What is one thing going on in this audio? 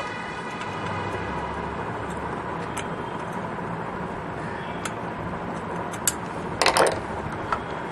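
A metal rod taps and scrapes against a sewing machine.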